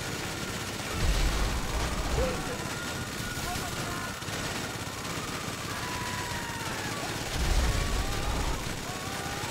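Explosions boom with deep rumbles.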